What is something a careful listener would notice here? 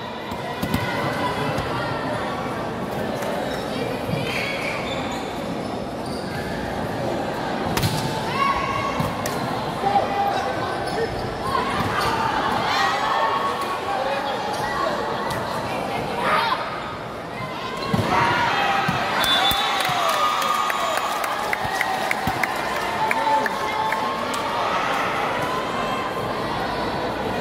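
A large crowd cheers and shouts throughout a large echoing hall.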